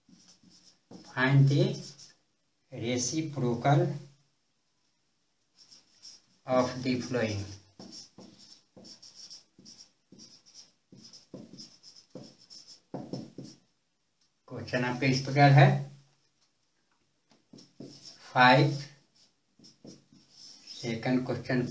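An elderly man explains in short bursts, close by.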